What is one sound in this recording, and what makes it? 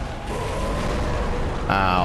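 A gun fires once.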